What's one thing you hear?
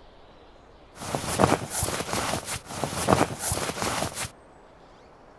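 Items rattle and clatter as a container is rummaged through.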